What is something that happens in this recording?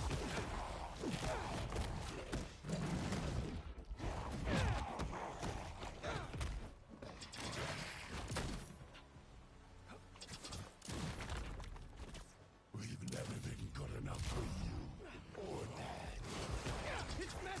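Whooshing swipes cut through the air.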